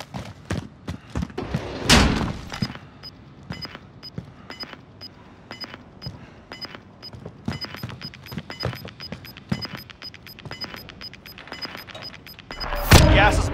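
Quick footsteps tap across a hard floor.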